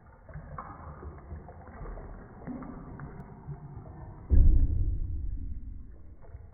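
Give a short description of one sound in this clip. Water gurgles and bubbles softly.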